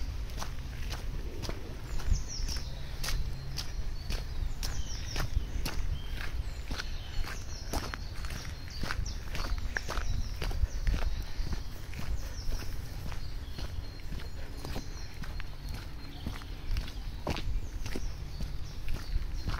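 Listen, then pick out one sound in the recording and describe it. Footsteps crunch steadily on a muddy gravel path.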